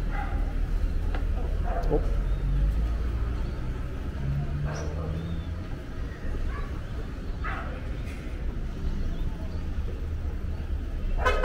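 Traffic hums steadily nearby outdoors.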